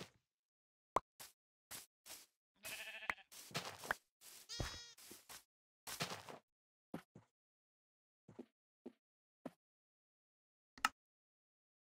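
Soft footsteps patter on grass.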